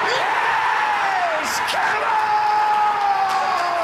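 A young man yells loudly with excitement.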